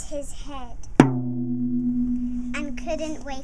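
A tambourine is struck once and rings.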